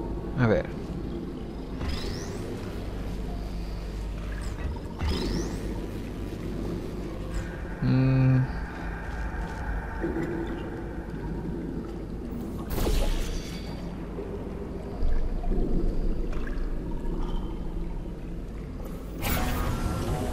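A laser beam hums steadily.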